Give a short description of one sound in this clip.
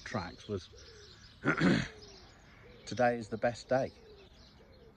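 A man speaks close by, calmly, in short bursts.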